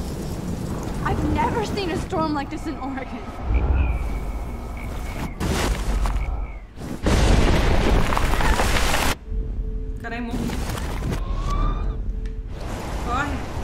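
A young woman speaks calmly, close to a microphone.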